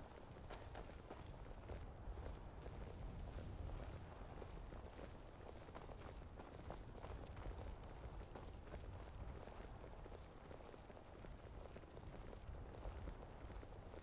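Footsteps tap on stone pavement.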